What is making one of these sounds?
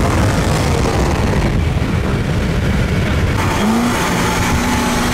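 Car engines roar loudly as cars race side by side.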